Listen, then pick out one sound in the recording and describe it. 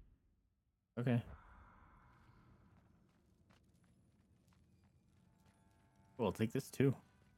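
A young man speaks with animation, close into a microphone.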